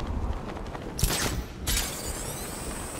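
A loud whoosh bursts out suddenly.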